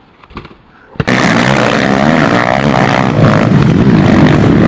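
A motorbike engine roars.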